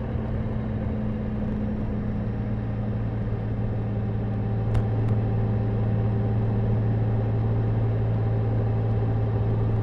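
Wind rushes past a motorcycle windscreen.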